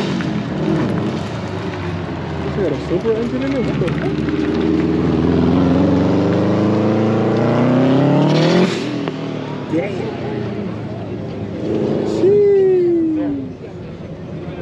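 A car engine roars and revs, rising in pitch.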